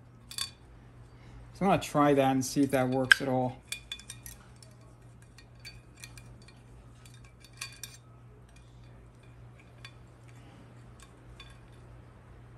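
Small metal parts click and tick against a metal plate.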